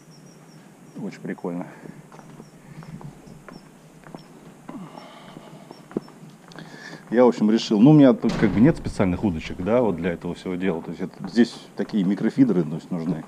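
A man talks calmly up close.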